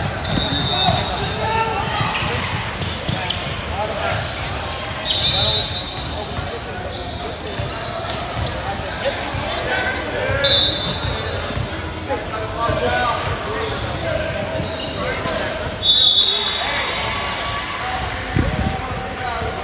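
A crowd of spectators chatters in a large echoing gym.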